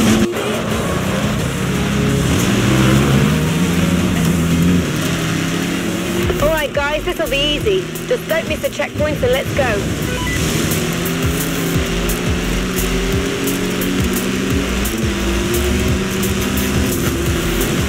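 A rally car engine roars and revs at high speed.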